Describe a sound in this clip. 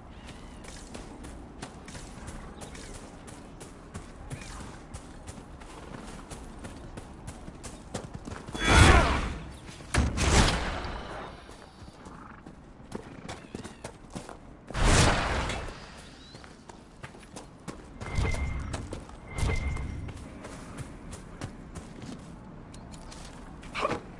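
Footsteps thud quickly on grass and dirt.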